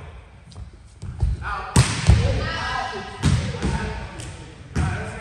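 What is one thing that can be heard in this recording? A volleyball thumps off players' hands and arms.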